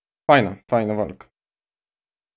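A young man speaks briefly and clearly into a close microphone.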